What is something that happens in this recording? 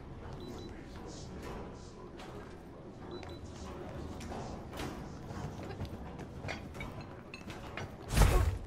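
Footsteps tap on a hard floor in an echoing hall.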